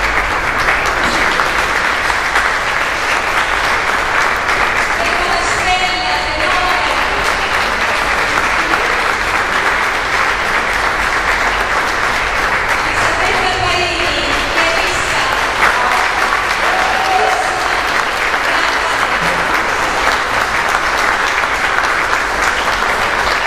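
An audience applauds steadily in an echoing hall.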